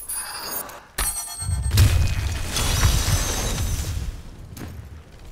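Magical blasts boom and crackle.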